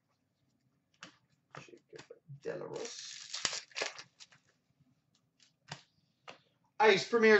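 Trading cards in plastic holders click and rustle as they are handled.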